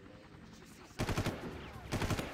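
Gunfire bursts out in quick shots.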